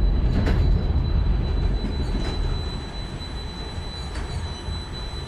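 Metal clanks sharply now and then on a funicular track.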